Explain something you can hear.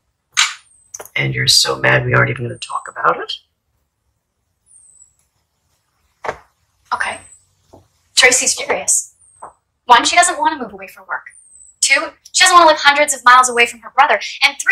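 An older woman speaks calmly.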